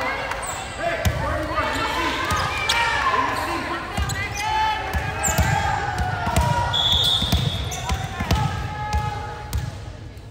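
A volleyball bounces repeatedly on a wooden floor.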